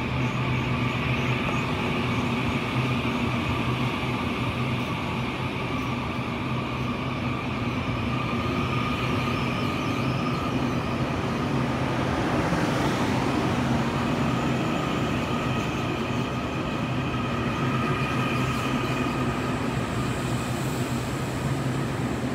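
Train wheels squeal with a high steady whine.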